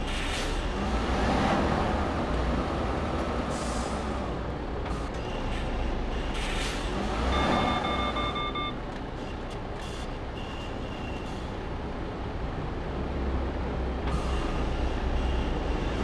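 A truck engine rumbles low and steady from inside the cab.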